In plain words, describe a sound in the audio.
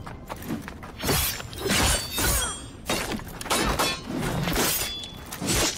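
A woman grunts with effort while fighting.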